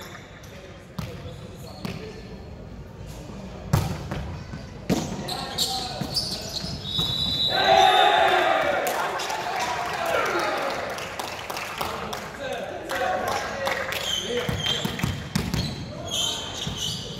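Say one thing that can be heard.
A volleyball is hit with sharp slaps in a large echoing gym.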